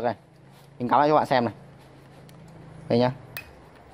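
A metal clamp clicks onto a battery terminal.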